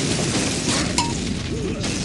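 An energy blast crackles and hums.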